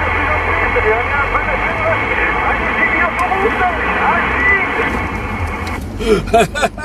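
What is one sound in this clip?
A muffled voice comes through a CB radio speaker.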